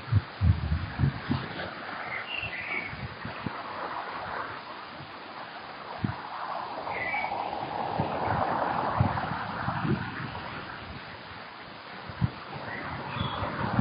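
Wind blows gustily outdoors, rumbling against the microphone.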